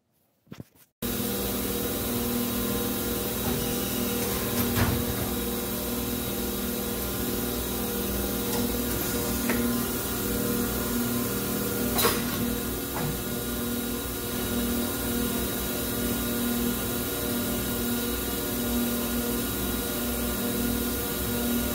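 A large machine hums and whirs steadily in an echoing hall.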